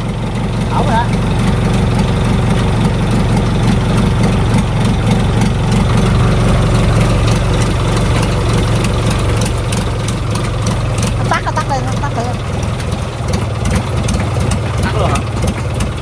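A small engine runs with a steady, low, throbbing hum close by.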